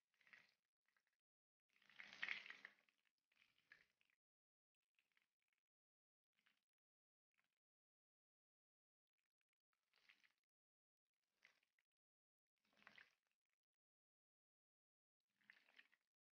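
A spatula scrapes against a frying pan.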